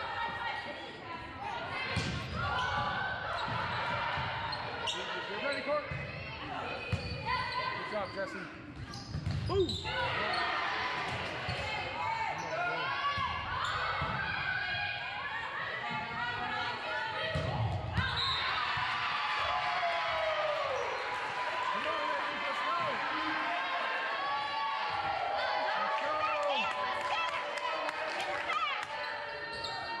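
Young women call out and chatter in a large echoing gym.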